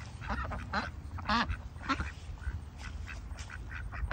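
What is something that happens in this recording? Ducks quack nearby.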